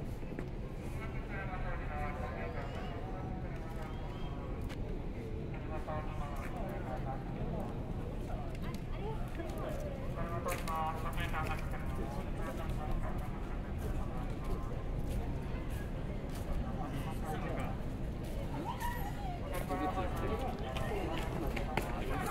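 A crowd of people chatters at a distance.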